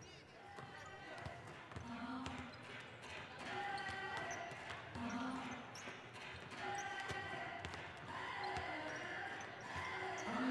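Basketballs bounce on a hard court in a large echoing hall.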